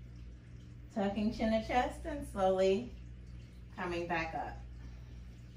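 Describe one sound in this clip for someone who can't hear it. A woman speaks calmly into a close microphone.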